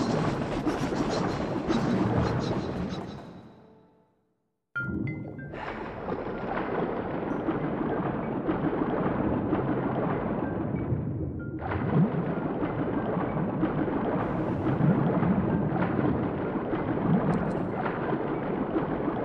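Water rushes and churns steadily, with a brief silence early on.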